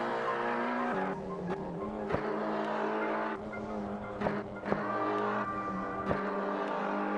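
A car engine drops in pitch with sharp pops as gears shift.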